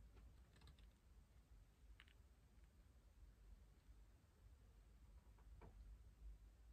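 Magazine pages rustle softly as they are handled.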